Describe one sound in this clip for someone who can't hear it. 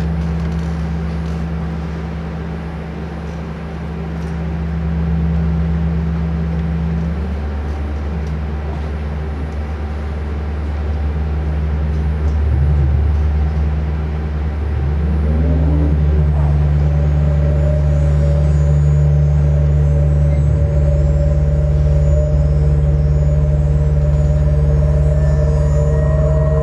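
Electronic synthesizer music plays steadily with deep droning tones and sliding pitches.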